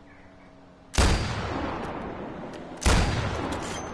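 A rifle fires loud shots that echo outdoors.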